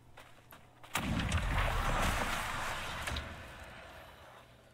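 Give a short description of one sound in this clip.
A magical blast whooshes loudly and slowly fades.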